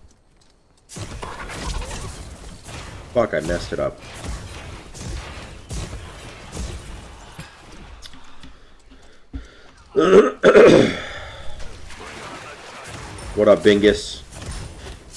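Video game combat sounds with blows and magic effects clash.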